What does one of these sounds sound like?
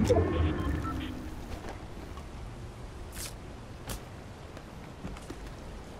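A character gulps down a drink.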